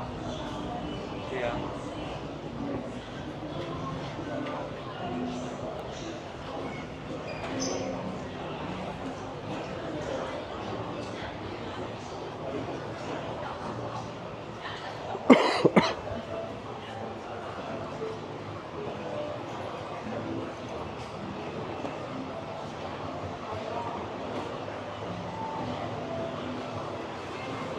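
Many people chatter in a busy indoor space.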